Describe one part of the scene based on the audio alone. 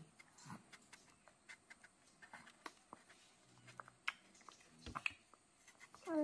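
A baby smacks its lips while eating.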